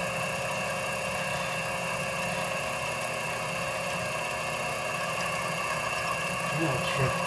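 A lathe motor hums steadily as the chuck spins.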